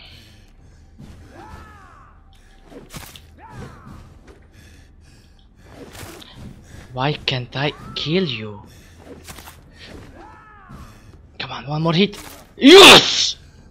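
Blades swing and strike in a close fight.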